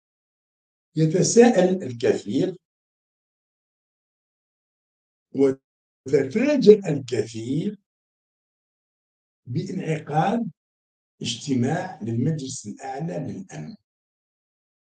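An older man speaks with animation, close to a microphone.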